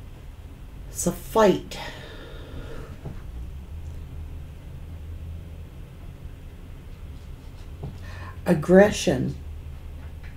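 A middle-aged woman speaks briefly close to a microphone.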